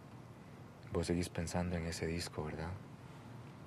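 A man speaks softly and warmly, close by.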